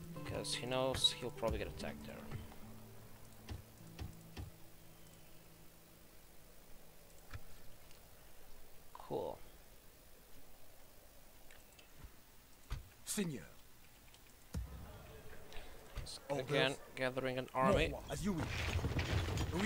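Soft clicks sound as menu buttons are pressed.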